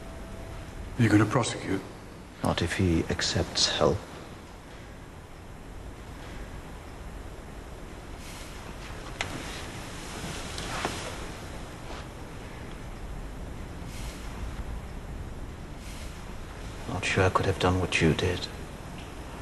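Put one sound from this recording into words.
A man speaks quietly and calmly nearby, in short phrases.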